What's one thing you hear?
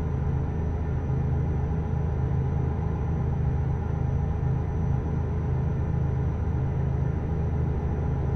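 A truck engine hums steadily with a low, deep drone.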